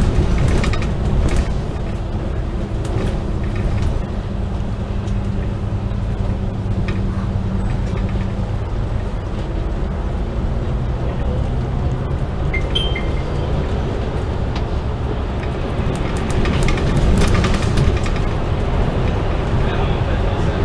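A diesel engine drones from inside a double-decker bus.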